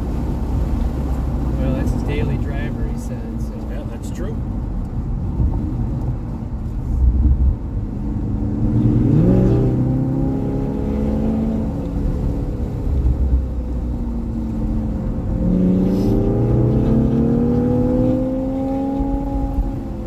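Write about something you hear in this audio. A sports car engine accelerates, heard from inside the cabin.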